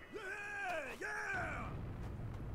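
Gruff male voices cheer excitedly.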